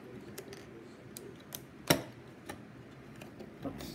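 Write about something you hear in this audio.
Plastic toy bricks click and snap as fingers press them together.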